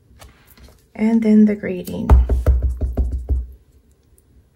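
A stamp presses down onto card with soft thumps.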